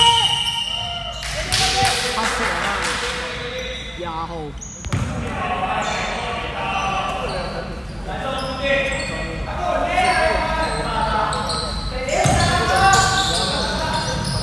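Young men call out to each other across a court in a large echoing hall.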